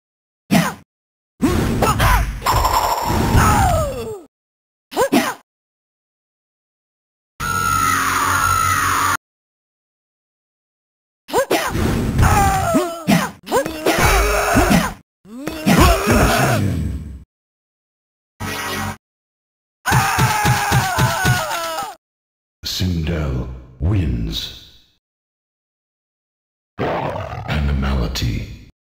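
A retro arcade fighting game plays punch, kick and special-move sound effects.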